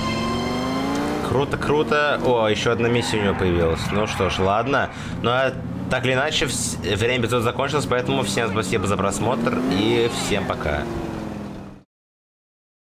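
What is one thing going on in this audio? A car engine revs as a car drives along a street.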